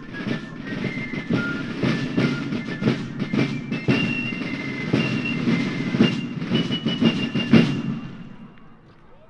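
A marching band plays a brisk march on brass instruments outdoors.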